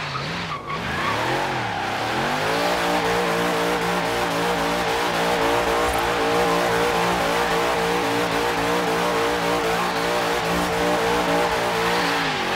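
A loud car engine revs and drones steadily at high speed.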